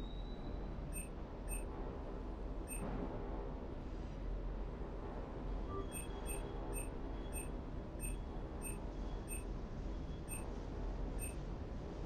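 Short electronic menu beeps sound as a selection moves through a list.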